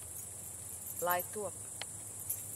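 A woman speaks briefly in a rising voice.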